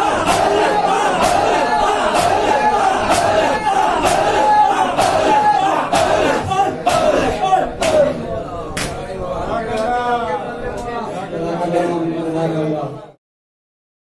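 A crowd of men chants loudly together in an echoing hall.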